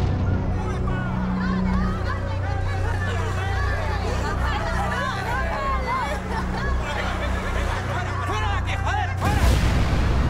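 People in a crowd talk over one another nearby.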